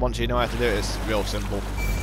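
Water splashes as a swimmer climbs out.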